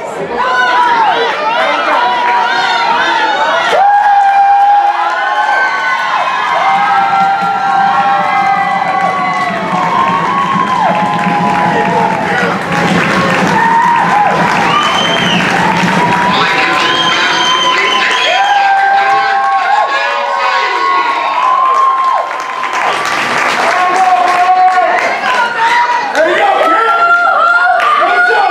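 A crowd of spectators cheers and shouts loudly outdoors.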